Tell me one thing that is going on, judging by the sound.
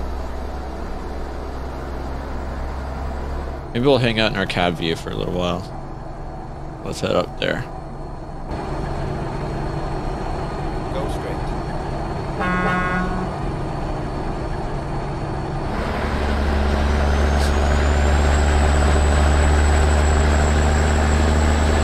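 A truck engine drones steadily while driving on a highway.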